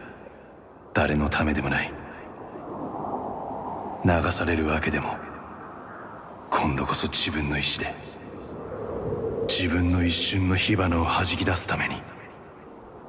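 A young man speaks in a low, calm voice.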